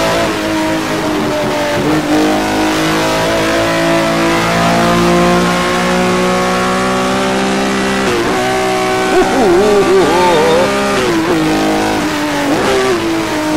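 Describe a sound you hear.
A racing car engine roars steadily through a loudspeaker, its pitch shifting with the gear changes.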